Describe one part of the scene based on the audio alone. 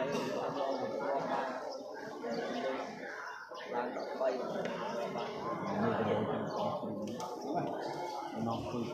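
A crowd of spectators chatters loudly in a large echoing hall.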